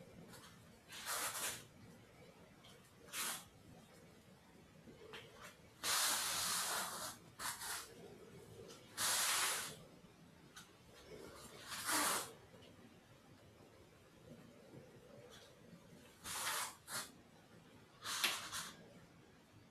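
Feet slide and shuffle softly on a padded mat.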